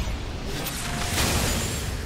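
A bright energy beam zaps across the battle.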